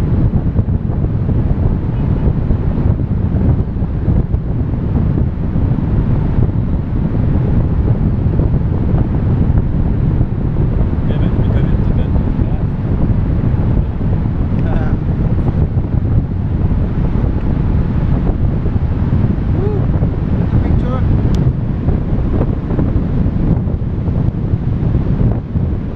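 Strong wind rushes and buffets loudly past the microphone.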